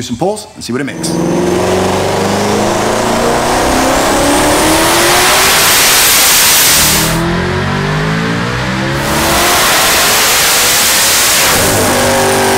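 A car engine revs hard, rising in pitch to a loud roar.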